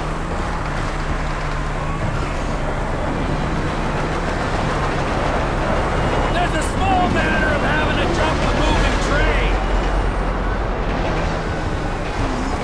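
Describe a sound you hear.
A motorbike engine roars steadily at speed.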